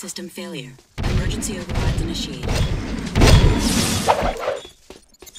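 Energy blasts crackle and boom as a creature is hit.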